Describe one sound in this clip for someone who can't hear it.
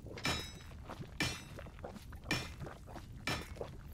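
A pickaxe strikes rock.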